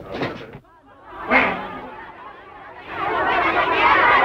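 A crowd murmurs in an echoing hall.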